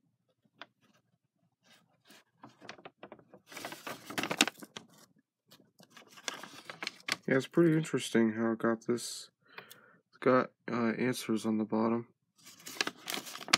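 A paper bag rustles and crinkles as it is turned in the hands.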